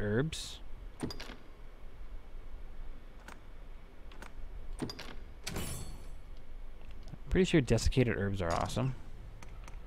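Soft menu clicks and chimes sound as selections are made.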